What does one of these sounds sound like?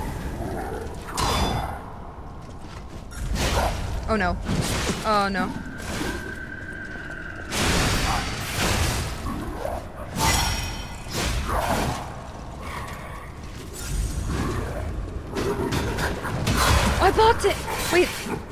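Weapons clash and slash.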